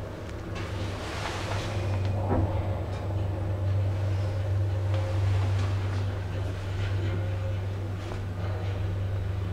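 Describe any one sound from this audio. An elevator hums steadily as the car moves.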